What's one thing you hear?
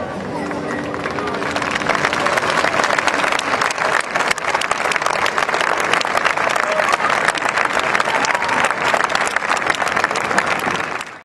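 A large crowd claps and cheers loudly outdoors.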